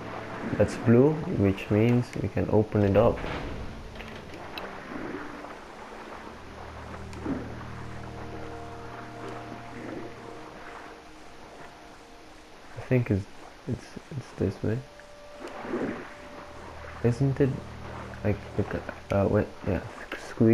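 Leaves rustle as something pushes through dense undergrowth.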